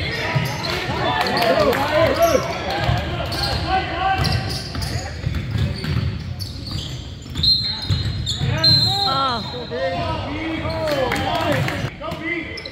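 Basketball shoes squeak sharply on a hardwood court in a large echoing gym.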